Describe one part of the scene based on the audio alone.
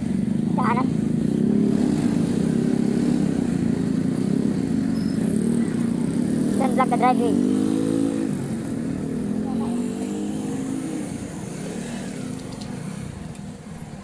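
A motorcycle engine hums steadily while riding, then slows and quietens.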